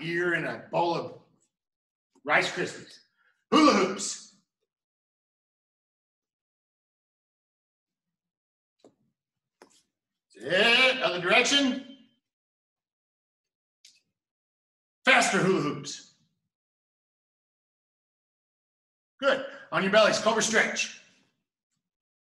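A middle-aged man speaks calmly in short bursts.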